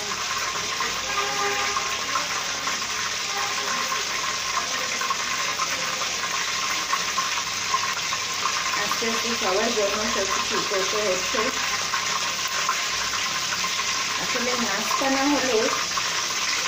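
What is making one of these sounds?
Hot oil sizzles softly in a pan.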